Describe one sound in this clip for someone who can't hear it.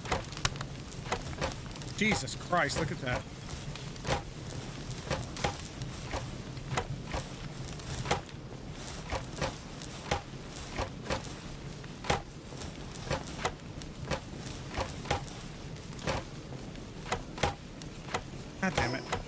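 Footsteps tread quickly on grass and gravel.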